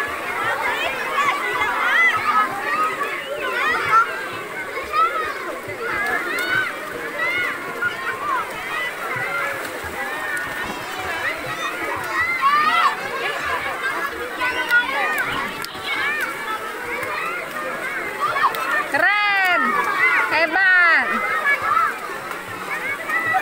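Young children shout and squeal excitedly all around, outdoors.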